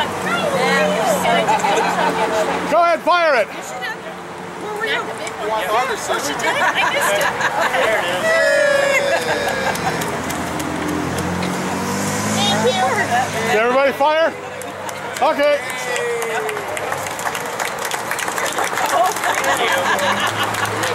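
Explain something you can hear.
A crowd of men and women chatter and cheer outdoors.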